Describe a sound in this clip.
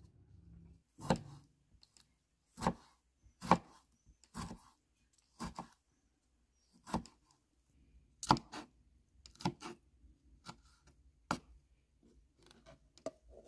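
A knife chops through vegetables onto a wooden board.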